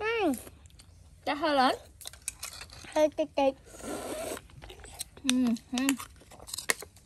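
A young boy talks.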